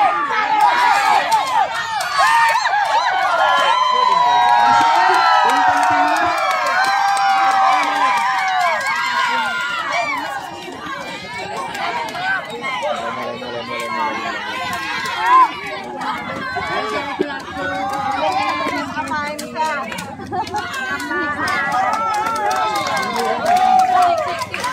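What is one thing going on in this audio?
A crowd of spectators shouts and cheers loudly nearby.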